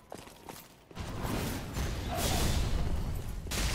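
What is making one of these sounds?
A sword clashes loudly in a fight.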